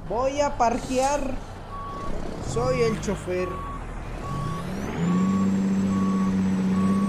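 A truck engine hums and revs up, then drones steadily.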